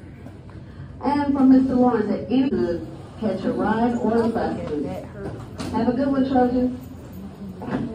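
A young woman talks close by, with animation.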